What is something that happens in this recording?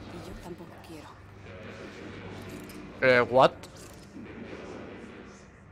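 A young man talks quietly into a close microphone.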